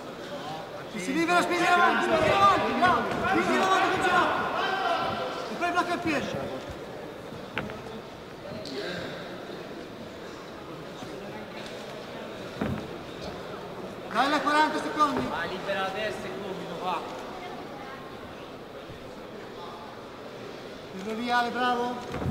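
A crowd of spectators shouts and cheers in a large hall.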